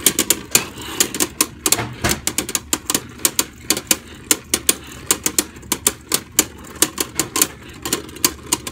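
Spinning tops whir and clack sharply against each other.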